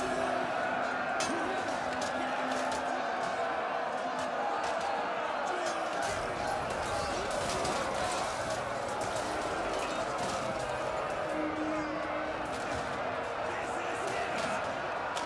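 A crowd of soldiers shouts and roars in battle.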